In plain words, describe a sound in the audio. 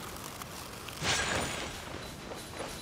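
A magical burst of sparkling energy whooshes.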